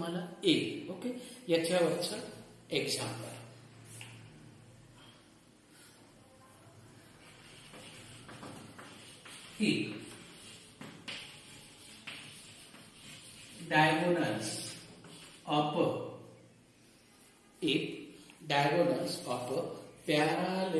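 An elderly man speaks calmly and explains, close by.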